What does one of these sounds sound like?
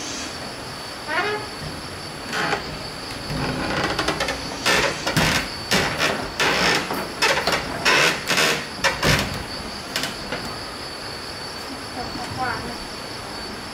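Wooden doors creak as they swing shut.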